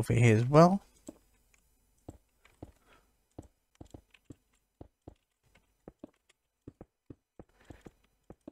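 Stone blocks are placed one after another with short, soft thuds in a video game.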